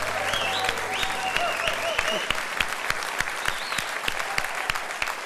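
A large audience claps and applauds loudly.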